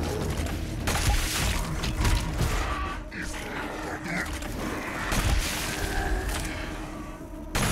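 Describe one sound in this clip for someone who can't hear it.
Explosions burst with a deep roar.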